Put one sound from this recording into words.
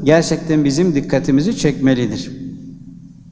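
An elderly man recites in a melodic chanting voice through a microphone, in an echoing room.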